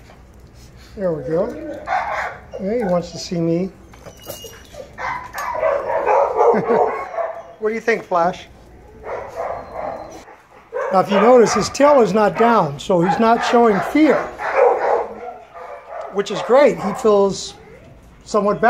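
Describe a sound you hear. A small dog whines and yelps in rising and falling pitches.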